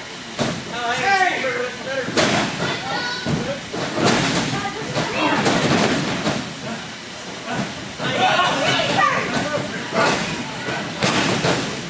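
Wrestlers thud onto a wrestling ring's canvas.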